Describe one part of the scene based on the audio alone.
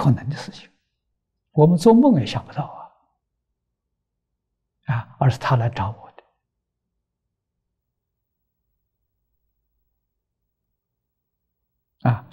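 An elderly man speaks calmly and warmly into a close microphone, with long pauses.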